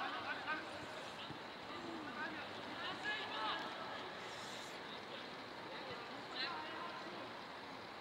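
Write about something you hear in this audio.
Players shout to each other across an open field, heard from a distance.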